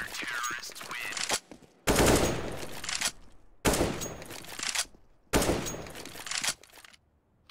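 A rifle rattles and clicks as it is handled.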